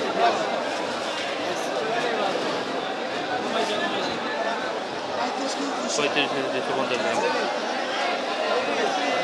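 A crowd of men chatter loudly all around, close by.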